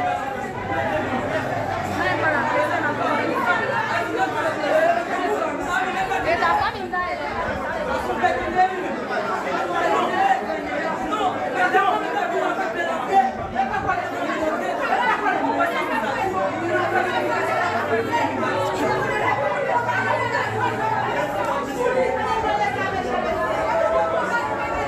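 A crowd of young men and women talks loudly all at once, echoing in a hard-walled room.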